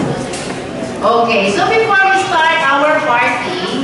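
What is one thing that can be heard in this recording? A young woman speaks through a microphone over loudspeakers.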